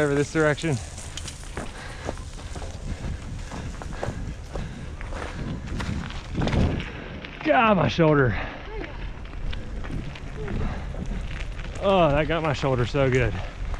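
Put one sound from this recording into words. Bicycle tyres crunch over gravel.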